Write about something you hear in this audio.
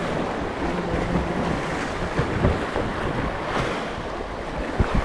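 Waves wash against rocks outdoors.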